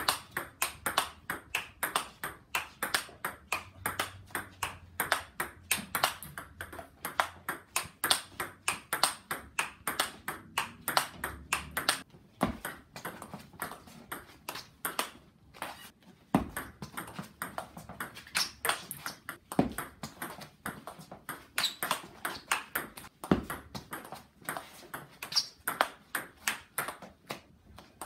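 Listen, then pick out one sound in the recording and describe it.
A ping-pong ball clicks rapidly back and forth off paddles and a table.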